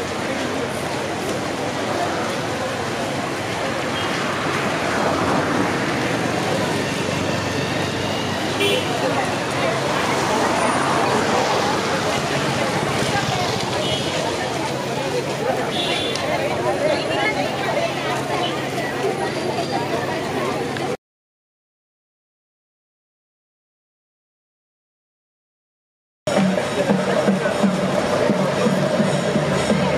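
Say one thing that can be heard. Many footsteps shuffle on a paved road.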